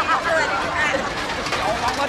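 A young woman laughs heartily.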